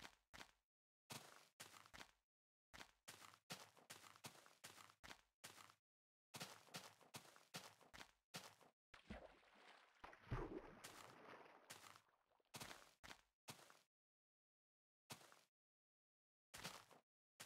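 Footsteps crunch on grass in short bursts.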